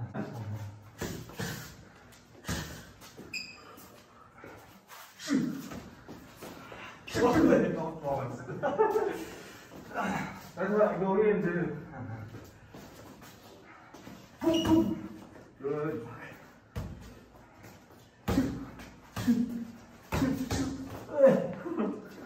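Boxing gloves thud on each other during sparring.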